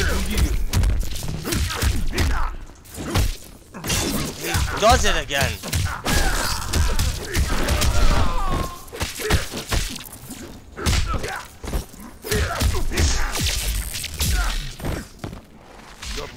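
Punches and kicks thud and crack in quick succession.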